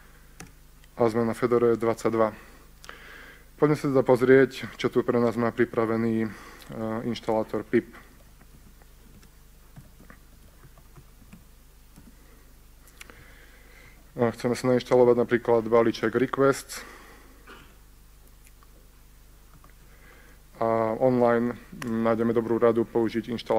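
A man talks calmly through a microphone, pausing often.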